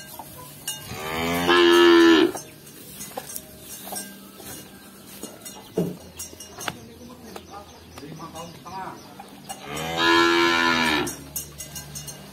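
A cow moos loudly, long and low.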